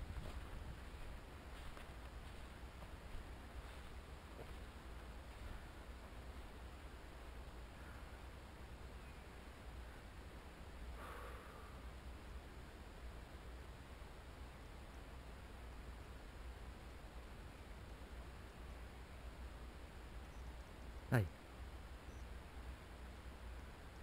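Wind rumbles steadily across an outdoor microphone.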